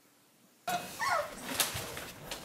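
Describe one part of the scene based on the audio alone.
Puppies squeak and whimper close by.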